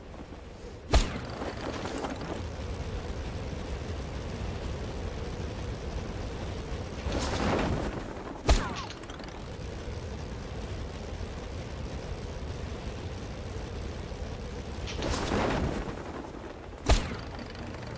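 A parachute snaps open with a sharp thump, several times.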